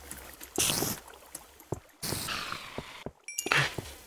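A spider is struck and dies with a short hiss.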